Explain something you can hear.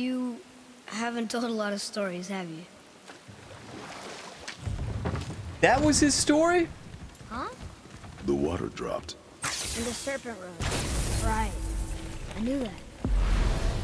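A boy speaks calmly.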